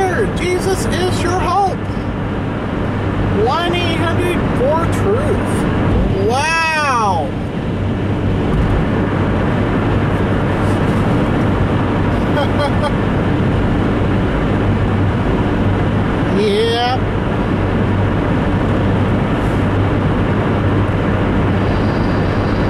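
Tyres roll steadily on a highway with a low road rumble.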